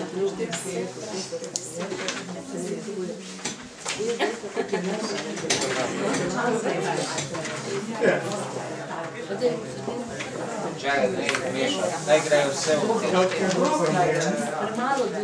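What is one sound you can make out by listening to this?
Paper rustles as a man handles sheets.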